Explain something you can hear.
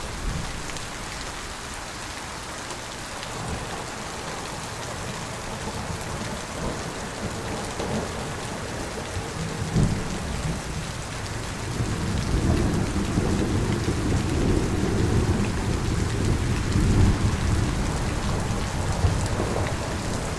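Heavy rain pours steadily outdoors, growing louder partway through.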